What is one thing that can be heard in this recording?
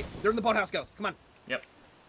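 A smoke grenade hisses as it releases smoke.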